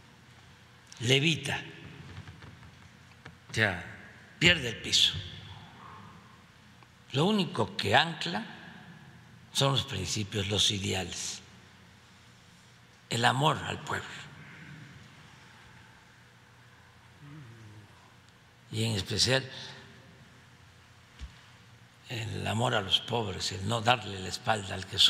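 An elderly man speaks slowly into a microphone, in bursts with long pauses, in an echoing hall.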